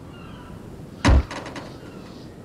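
A car's rear hatch slams shut with a heavy thud.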